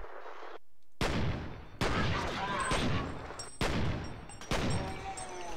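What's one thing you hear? Pistol shots ring out sharply, each followed by a ringing echo.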